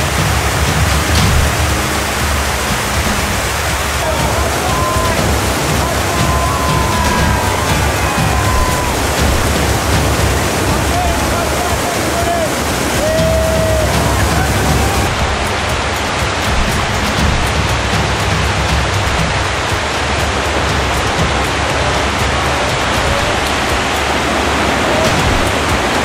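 Whitewater rapids roar loudly and steadily, close by.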